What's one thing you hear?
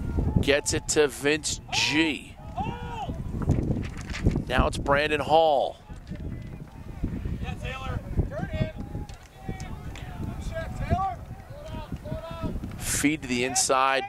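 Young men shout to each other across an open field, some way off.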